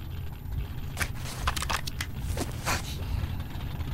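A syringe clicks and hisses.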